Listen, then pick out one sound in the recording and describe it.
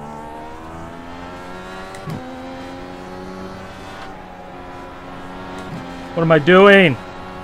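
A race car engine roars steadily at high revs, dropping in pitch briefly as it shifts gears.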